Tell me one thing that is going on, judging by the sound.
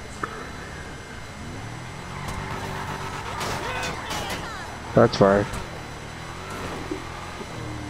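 A pickup truck's engine rumbles as it pulls away and drives.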